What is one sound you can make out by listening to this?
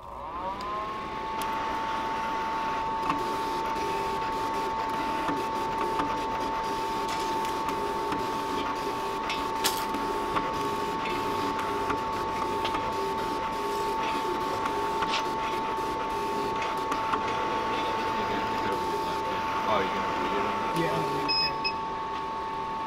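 A cutting plotter whirs steadily as its head shuttles back and forth.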